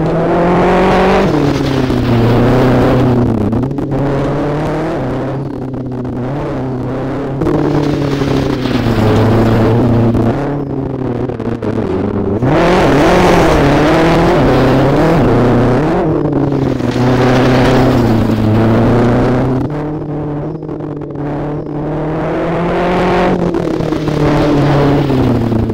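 Tyres crunch and skid on gravel.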